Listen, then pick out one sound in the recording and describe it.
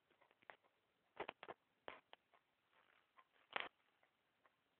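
Close knocks and rustles come as a phone is handled.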